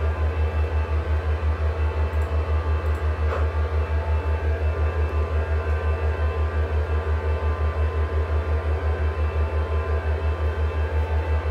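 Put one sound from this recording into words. A low aircraft engine drone throbs with a fast, steady pulse.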